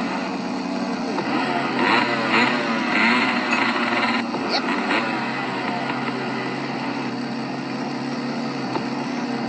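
A small motorbike engine buzzes and revs from a tablet's speaker.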